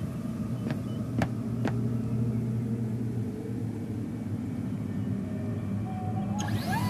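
An electronic scanner hums steadily.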